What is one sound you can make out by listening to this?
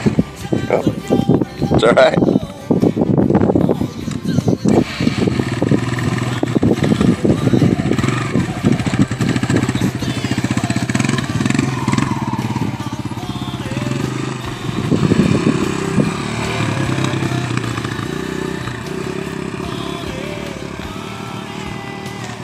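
A dirt bike engine revs loudly and then drives off, fading into the distance.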